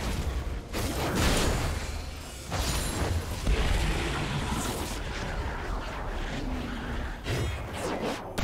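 Spell effects whoosh and crackle in a game.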